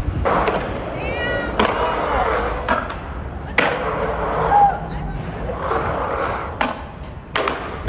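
Skateboard wheels roll and rumble across a concrete bowl.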